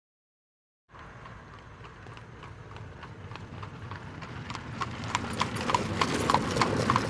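A horse's hooves thud on soft sand.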